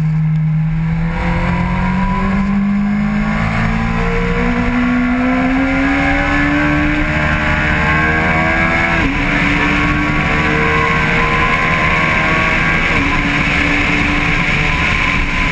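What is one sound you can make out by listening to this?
A motorcycle engine revs higher and higher as it speeds up.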